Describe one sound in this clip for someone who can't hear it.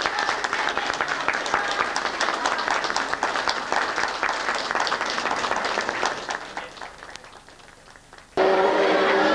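A group of people applaud in a room, then the clapping fades.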